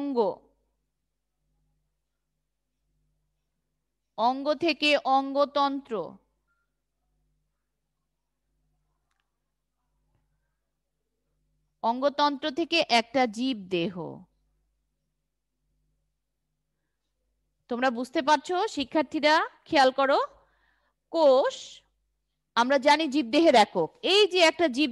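A woman speaks calmly and clearly into a headset microphone, in bursts with long pauses.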